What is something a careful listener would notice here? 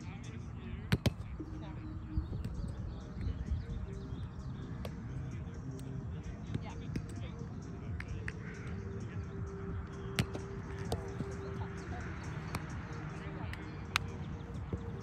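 A ball smacks against a small bouncy net.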